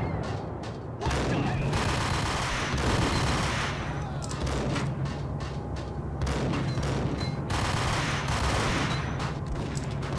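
Gunshots fire in quick bursts, echoing in a large hall.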